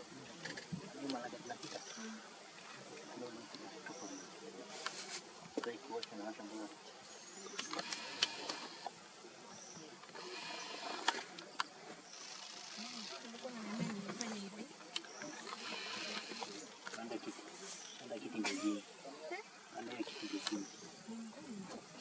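Grass rustles as leopard cubs scamper and tumble.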